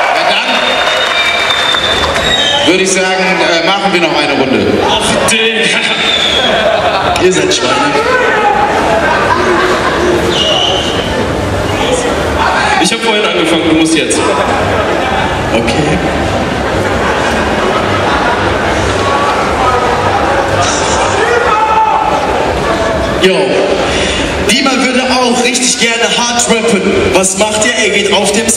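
A young man raps loudly into a microphone through a loudspeaker in a large echoing hall.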